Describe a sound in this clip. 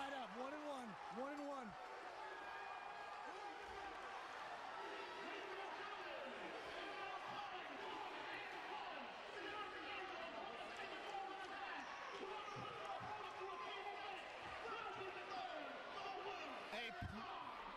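A crowd cheers and shouts loudly all around.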